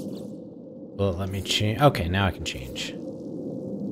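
A game menu plays a bright chiming tone.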